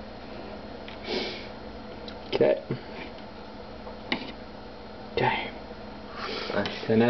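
A knife scrapes and clinks against a metal baking tray.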